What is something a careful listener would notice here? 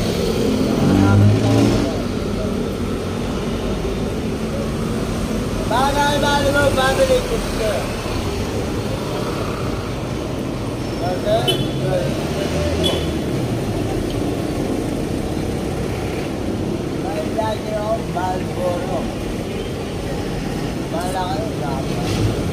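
Steady street traffic rumbles outdoors.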